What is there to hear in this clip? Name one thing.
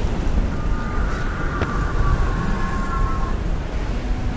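A magical burst hums and rings, then fades.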